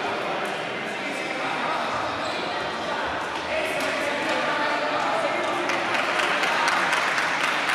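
A crowd of children chatter and cheer in an echoing hall.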